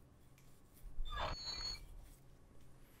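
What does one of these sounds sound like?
A metal door creaks and swings open.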